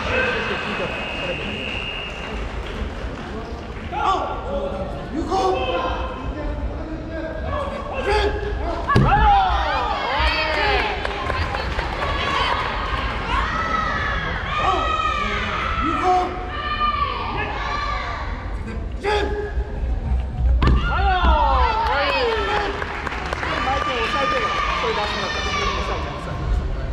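Young spectators shout and cheer loudly in a large echoing hall.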